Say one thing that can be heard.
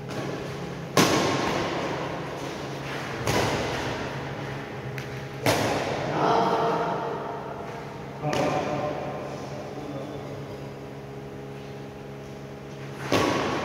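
Shuttlecocks are struck sharply with rackets, echoing in a large hall.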